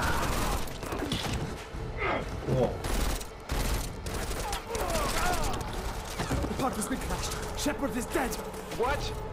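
A young man shouts in alarm.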